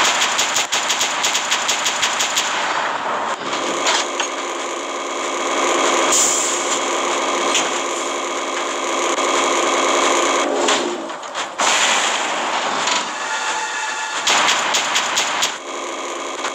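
Rapid machine gun fire rattles in quick bursts.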